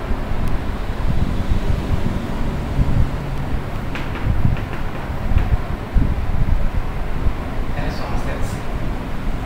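A man speaks steadily in a lecturing tone, close by in a room.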